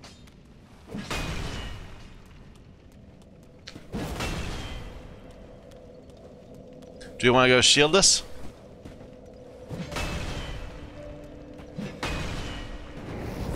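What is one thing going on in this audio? A heavy weapon whooshes through the air in swings.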